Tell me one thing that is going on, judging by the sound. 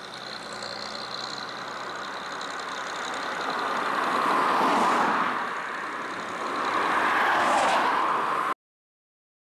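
A combine harvester's engine drones steadily as it drives away.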